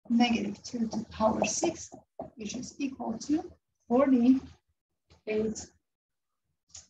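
A young woman explains calmly, close by.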